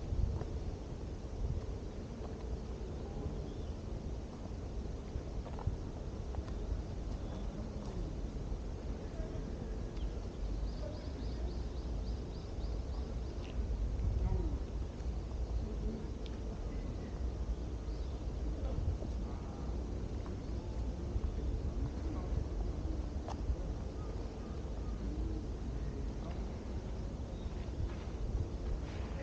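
Footsteps crunch steadily along a stone path.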